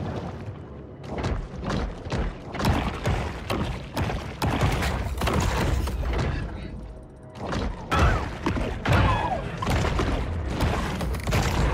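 Bites thump and crunch during an underwater fight.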